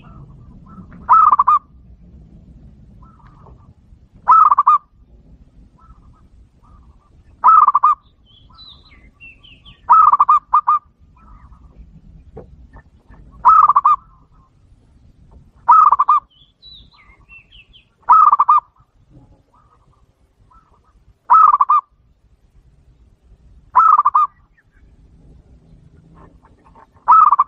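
A dove coos in short trilling bursts every few seconds, close by.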